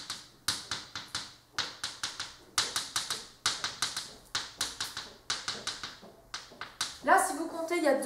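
Chalk taps and scratches quickly on a blackboard.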